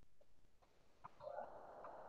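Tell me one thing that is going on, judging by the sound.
A woman speaks quietly over an online call.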